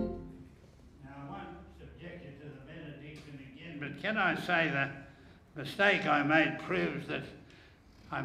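An elderly man speaks with animation into a microphone in a large echoing hall.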